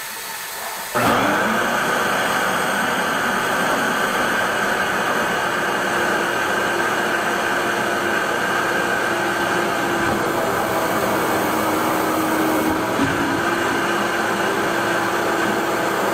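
A wet vacuum switches on and roars steadily as it sucks at a drain.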